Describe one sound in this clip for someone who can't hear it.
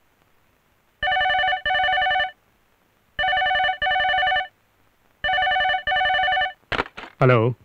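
A telephone rings repeatedly in double rings.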